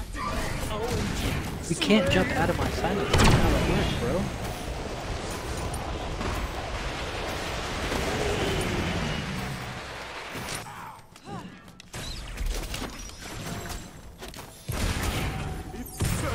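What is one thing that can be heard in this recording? Game combat effects crackle and whoosh.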